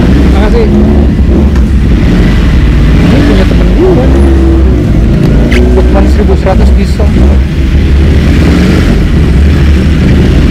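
A motorcycle engine idles with a deep, steady rumble close by.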